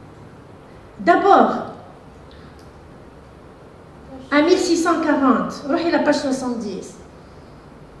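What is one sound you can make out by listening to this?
A woman speaks through a microphone and loudspeakers in an echoing hall.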